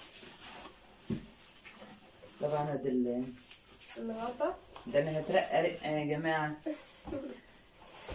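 Plastic wrapping crinkles as items are unpacked.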